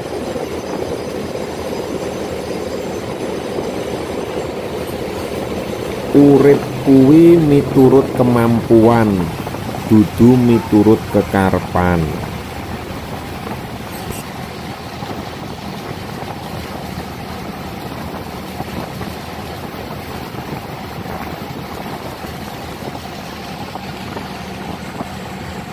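Water splashes and rushes against the side of a moving boat.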